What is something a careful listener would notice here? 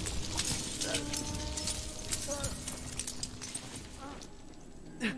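A sled rushes and hisses over snow.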